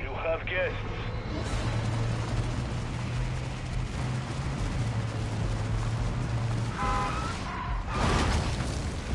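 A car engine roars steadily.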